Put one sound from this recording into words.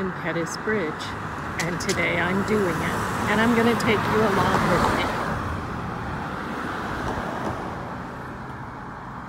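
Cars drive past close by on a road, their tyres hissing and fading away.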